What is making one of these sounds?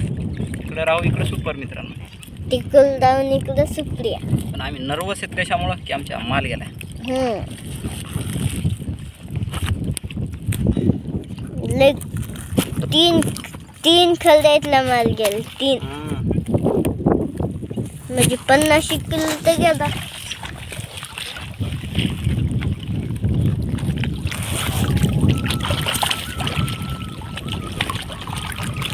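Water laps against a small boat.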